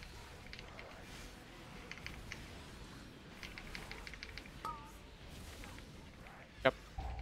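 Magic spells crackle and chime in a hectic battle.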